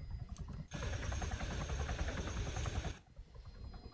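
A helicopter roars loudly.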